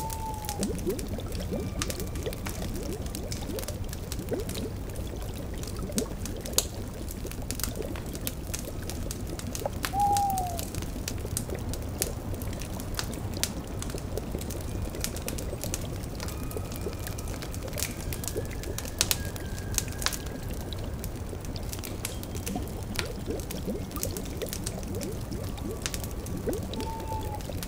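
A fire crackles and pops steadily.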